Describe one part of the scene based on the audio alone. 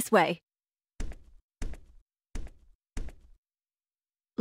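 Footsteps tap on a hard floor at an even pace.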